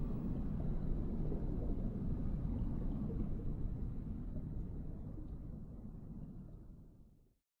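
A low, steady underwater rumble slowly fades away.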